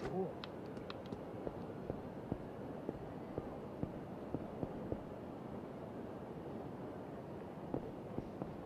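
Footsteps tap quickly on pavement outdoors.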